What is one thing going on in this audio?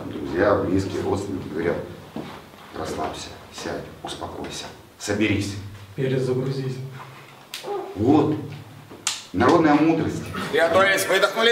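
A middle-aged man speaks with animation close by.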